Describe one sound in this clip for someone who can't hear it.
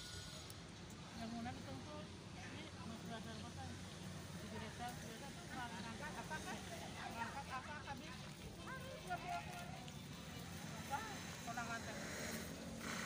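Women chat together nearby in relaxed voices.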